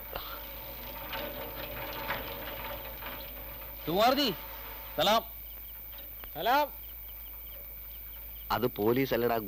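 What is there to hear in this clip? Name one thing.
A bicycle rolls slowly along a street.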